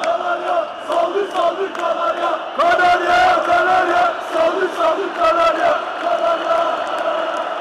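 A large crowd chants loudly in unison in a big echoing hall.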